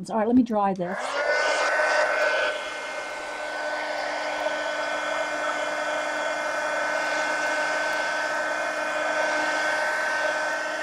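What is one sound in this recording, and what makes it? A heat gun blows with a steady, loud whirring roar.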